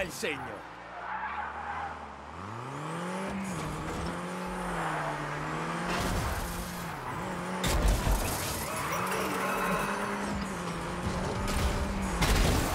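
A car engine revs and whines, rising and falling.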